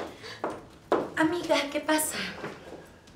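A young woman asks a question with concern, close by.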